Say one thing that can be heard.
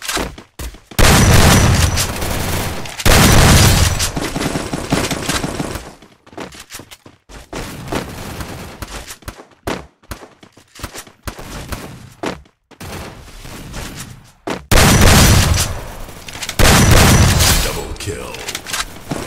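Shotgun blasts boom loudly, one at a time.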